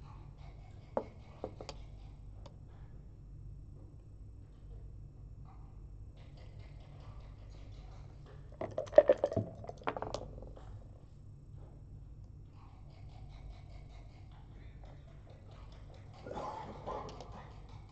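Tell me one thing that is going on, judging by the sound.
Game pieces click as they are moved on the board.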